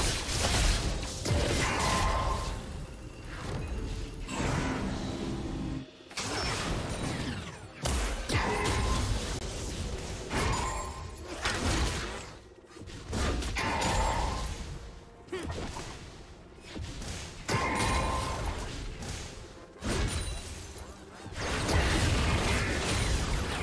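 Magic blasts whoosh and crackle in a busy battle.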